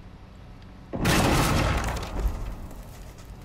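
An explosion bursts with a deep rumble and scattering debris.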